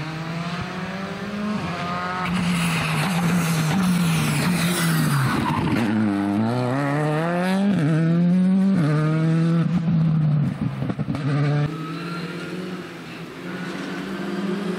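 A turbocharged four-cylinder rally car revs hard through the gears, passes close by, then fades into the distance.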